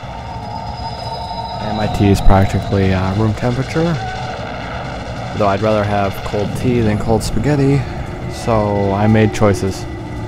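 Punches and energy blasts crash in a fight.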